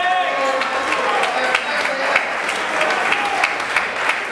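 A crowd murmurs and shouts in a large echoing hall.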